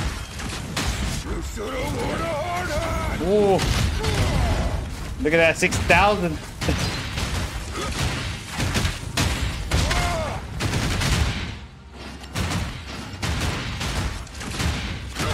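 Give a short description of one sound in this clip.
Heavy blows and slashes crash repeatedly in a fight.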